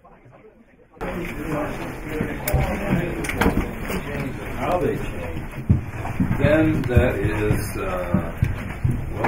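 A crowd of people chatters loudly in a room.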